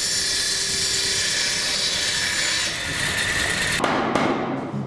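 A power saw whines as it cuts through wood.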